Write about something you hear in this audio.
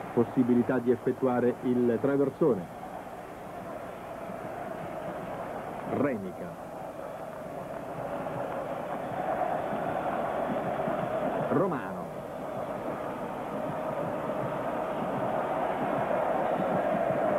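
A large stadium crowd roars steadily, growing louder.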